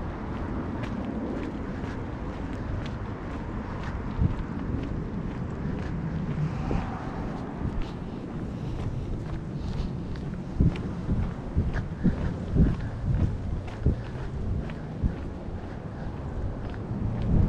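Footsteps tap on a concrete pavement.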